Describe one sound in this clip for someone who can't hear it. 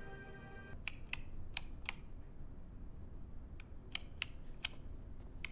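Abacus beads click sharply as they are flicked.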